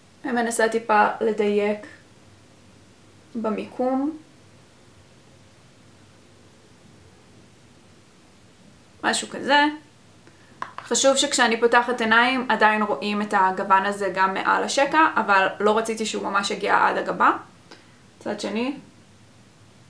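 A young woman talks calmly close to a microphone, in short bursts.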